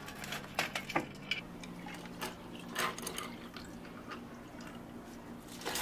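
Milk pours into a glass of ice with a soft trickle.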